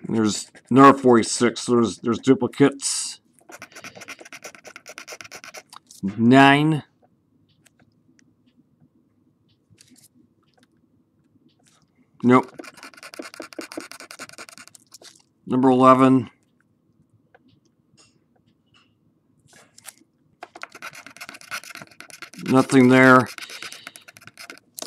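A coin scratches rapidly across a card in repeated bursts.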